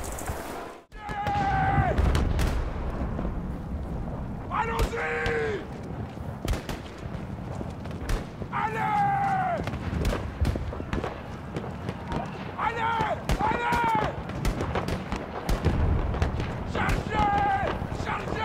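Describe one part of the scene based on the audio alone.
A fire roars and crackles close by.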